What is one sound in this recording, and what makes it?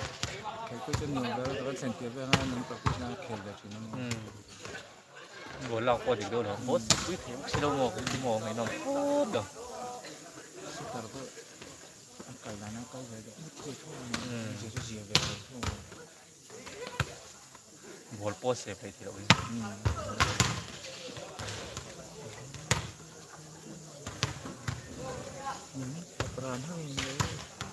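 A volleyball is struck with sharp slaps during play.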